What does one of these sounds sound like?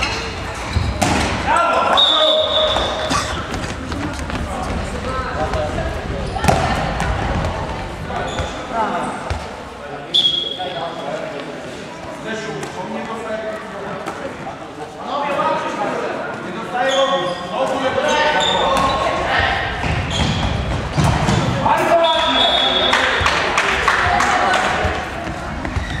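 Young boys shout and call out to each other in a large echoing hall.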